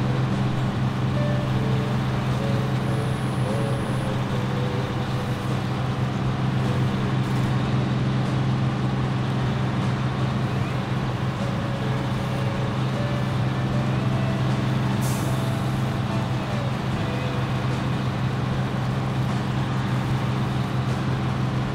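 A heavy diesel truck engine drones as the truck drives under load.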